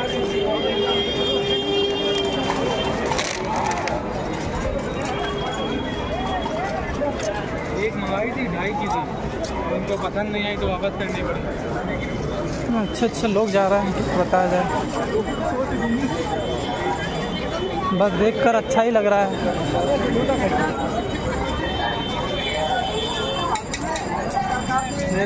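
A crowd murmurs and chatters all around, outdoors.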